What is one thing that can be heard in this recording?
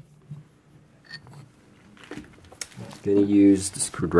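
A small wooden piece is pulled from a metal lathe chuck with a light scrape.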